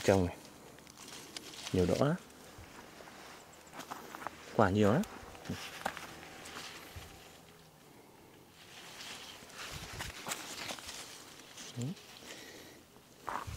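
Leaves rustle as a hand brushes through bean plants.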